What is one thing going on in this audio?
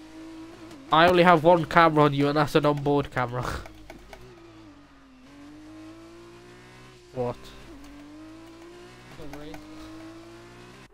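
A racing car engine whines steadily, rising and dipping in pitch as it shifts gears.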